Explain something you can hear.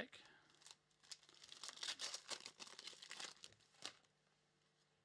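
Foil card packs crinkle and tear as they are opened.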